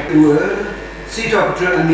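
A middle-aged man reads aloud through a microphone.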